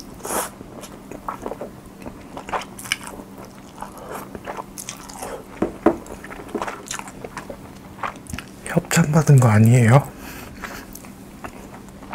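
A young man chews and smacks his lips close to a microphone.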